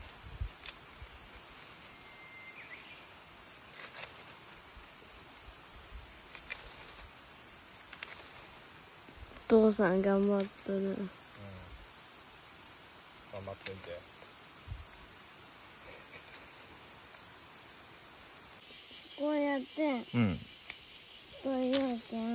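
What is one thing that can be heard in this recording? Leaves and twigs rustle as branches are pulled.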